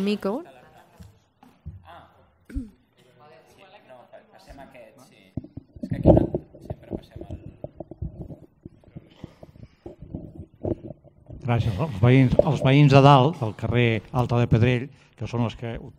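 A man talks through a microphone in a large echoing hall.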